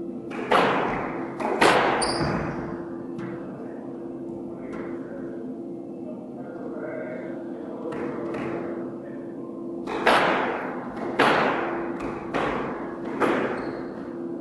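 Sneakers squeak and patter on a wooden floor.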